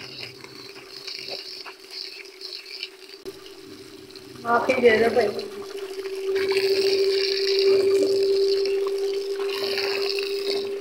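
Water splashes as a cloth is scrubbed by hand.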